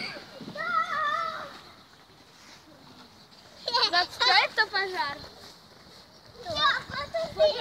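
A small child babbles and squeals nearby.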